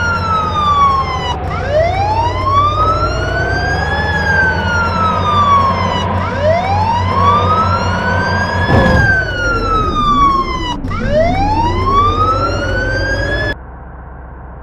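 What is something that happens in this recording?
A siren wails, rising and falling.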